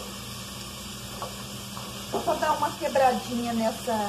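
Chopped vegetables slide off a plate and drop into a pot.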